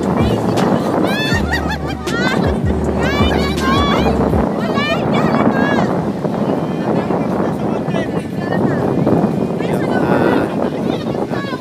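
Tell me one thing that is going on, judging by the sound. Young women scream in high voices.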